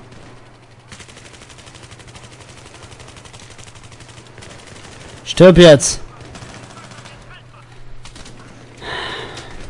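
Rapid automatic gunfire rattles close by.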